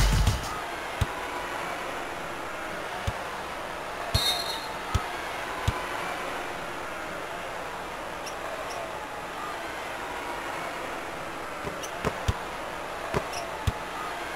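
A basketball thuds as it bounces on a wooden court.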